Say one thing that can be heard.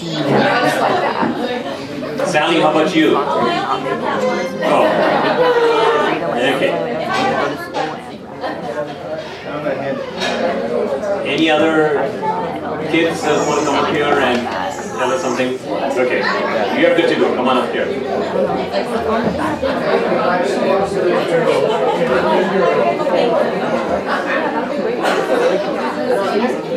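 A man speaks with animation into a microphone, heard through loudspeakers in a room.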